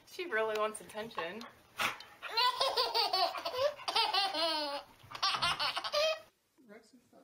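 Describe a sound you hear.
A baby laughs with delight in high bursts.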